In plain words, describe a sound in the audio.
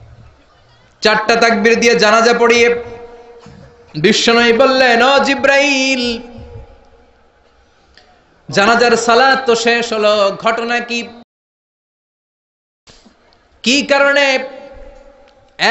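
A man preaches loudly in a chanting, sing-song voice through a loudspeaker, in bursts with pauses.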